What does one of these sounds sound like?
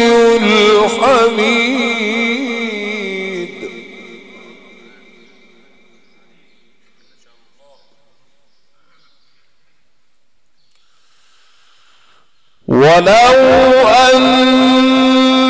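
A man chants in a long, melodic voice through a microphone.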